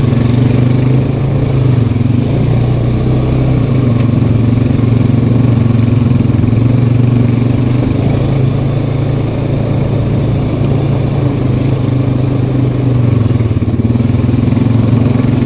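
An all-terrain vehicle engine drones steadily close by.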